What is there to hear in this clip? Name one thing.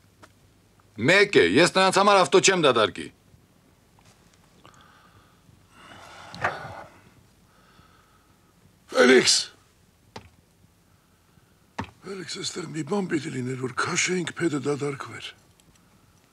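An elderly man speaks nearby.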